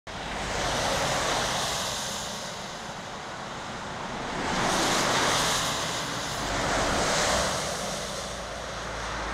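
A heavy truck roars past close by on the road.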